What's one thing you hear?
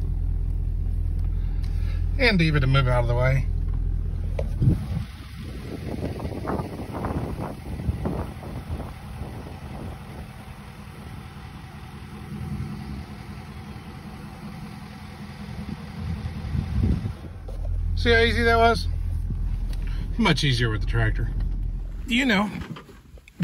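A vehicle engine idles and hums low.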